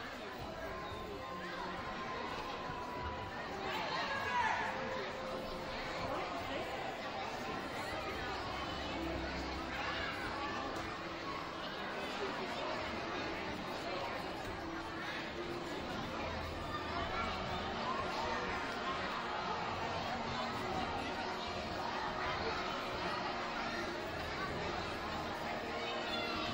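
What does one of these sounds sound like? A crowd of children and adults chatters throughout in a large echoing hall.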